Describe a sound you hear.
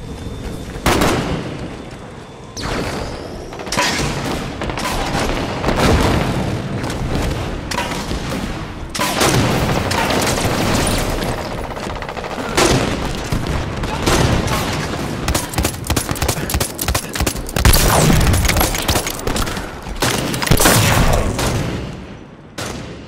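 Gunshots fire in quick bursts, with loud booming blasts.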